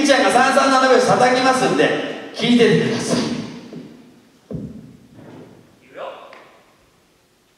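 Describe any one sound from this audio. A woman sings out loudly through a microphone, echoing in a large hall.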